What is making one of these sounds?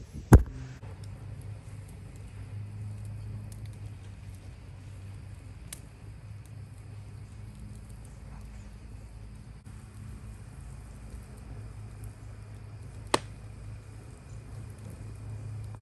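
A wood fire crackles and roars steadily, with occasional sharp pops.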